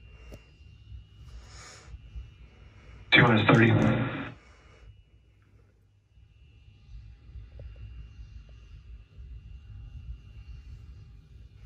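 Gas vents from a rocket with a low, steady rush in the distance.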